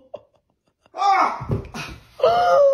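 A man drops heavily onto a carpeted floor with a thud.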